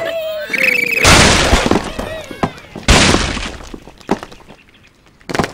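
Wooden planks crash and clatter as a structure collapses.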